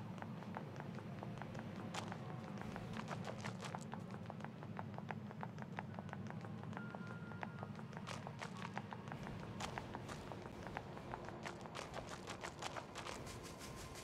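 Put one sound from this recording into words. Footsteps patter quickly over rubble and ground.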